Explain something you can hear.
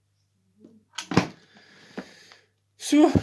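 A cooker lid clicks and rattles as it is handled.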